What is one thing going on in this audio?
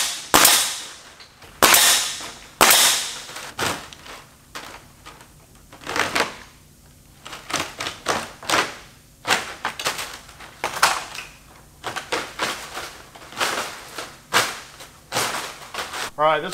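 A pneumatic staple gun fires with sharp, rapid bangs.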